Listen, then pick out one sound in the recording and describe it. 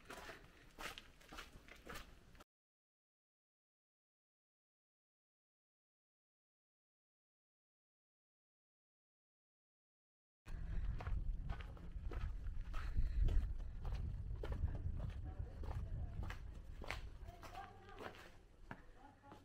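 Footsteps walk slowly along a paved lane.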